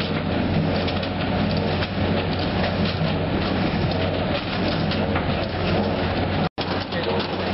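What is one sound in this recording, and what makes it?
Sugar beets clatter and tumble along a conveyor.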